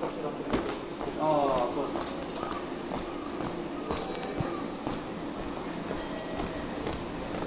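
Footsteps tap on a hard floor in a large echoing hall.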